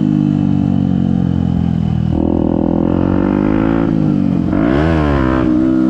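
A motorcycle engine roars up close, revving up and down as it shifts gears.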